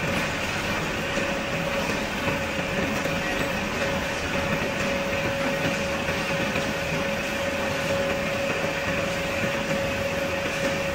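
A drill bores steadily into steel with a grinding hum.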